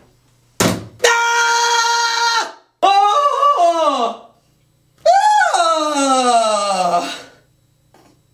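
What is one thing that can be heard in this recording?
A young woman screams and wails loudly, close by.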